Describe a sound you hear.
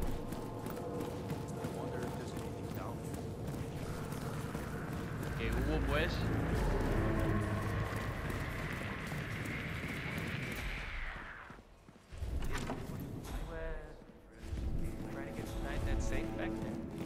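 Footsteps thud steadily on hard stairs and floors.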